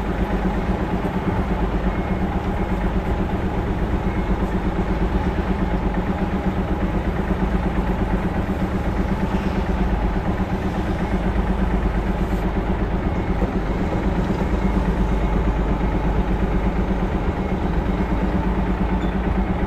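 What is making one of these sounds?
A truck's diesel engine runs with a low, steady rumble.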